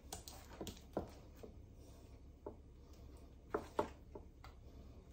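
Hands clink pieces of food into a glass dish.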